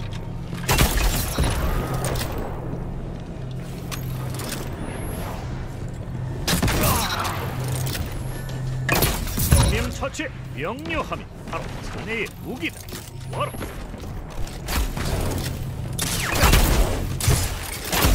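Sword slashes whoosh and clang.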